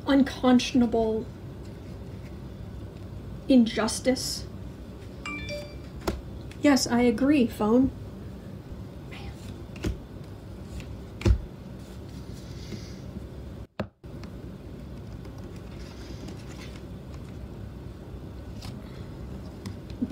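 Playing cards slide and tap against a glass tabletop.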